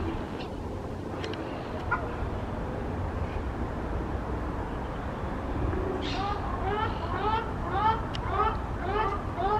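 Water splashes as ducks struggle on the surface.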